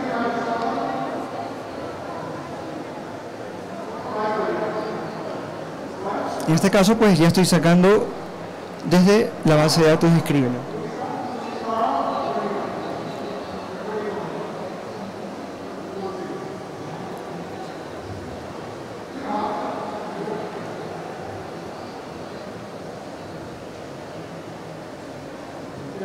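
A young man speaks calmly through a microphone and loudspeakers in a large echoing hall.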